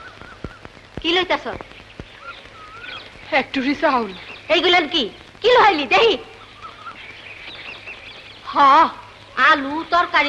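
A woman talks loudly and with animation, close by.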